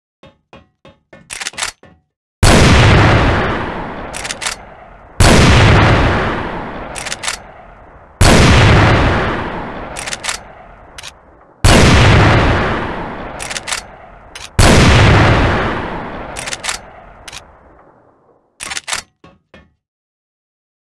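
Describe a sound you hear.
Metal clicks and clacks as a gun's bolt is worked.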